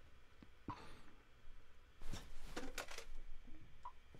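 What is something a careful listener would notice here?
A phone handset clatters as it is picked up.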